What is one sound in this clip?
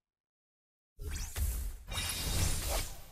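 Game heroes clash with sharp hits and magic bursts.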